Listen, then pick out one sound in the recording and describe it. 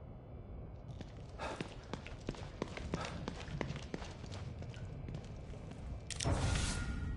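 Footsteps tread quickly on a hard tiled floor.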